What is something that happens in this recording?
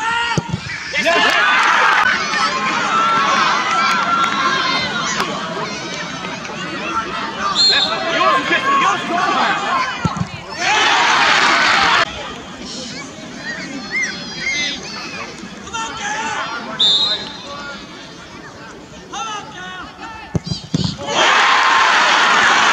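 A crowd of spectators cheers loudly outdoors.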